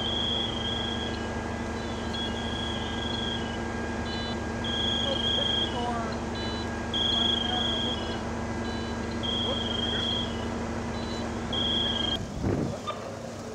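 A fire engine's pump rumbles and hums steadily nearby.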